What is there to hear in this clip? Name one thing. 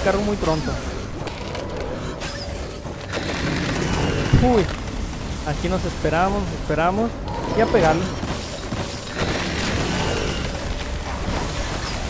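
Icy magic blasts crackle and whoosh during a fight.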